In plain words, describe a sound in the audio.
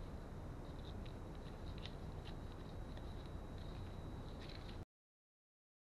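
A small screwdriver scrapes against plastic.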